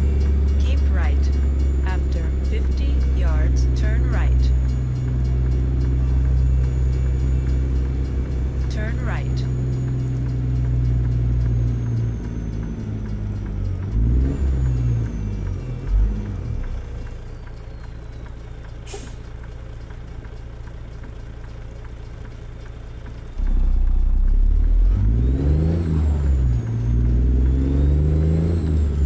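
A truck's diesel engine rumbles steadily, dropping to an idle and then revving up again.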